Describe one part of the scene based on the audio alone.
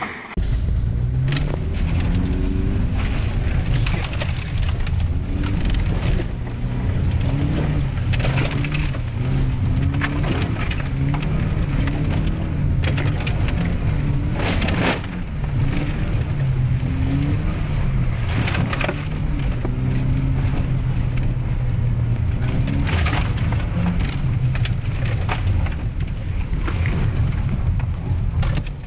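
A car engine drones and revs up and down steadily throughout.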